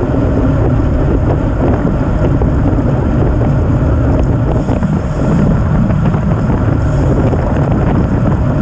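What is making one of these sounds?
Wind rushes loudly past a bicycle rider.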